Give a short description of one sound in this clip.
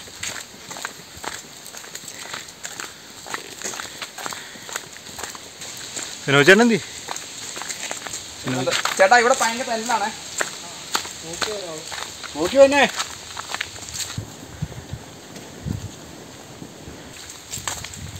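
Footsteps crunch on a dirt track.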